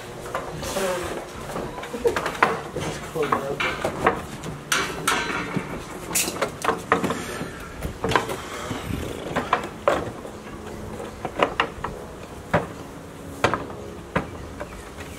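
Wooden furniture knocks and bumps as it is carried.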